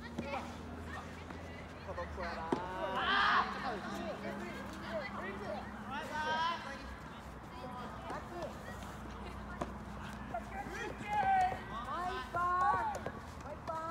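Several young men talk and call out outdoors.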